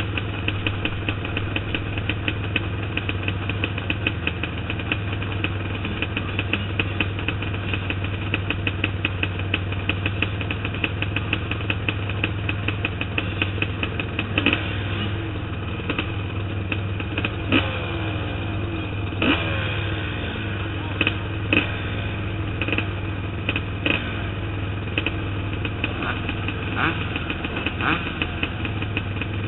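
A motorbike engine drones steadily up close.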